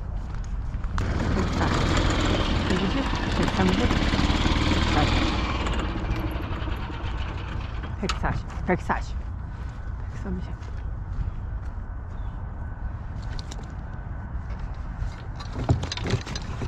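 A golf cart hums and rolls over grass.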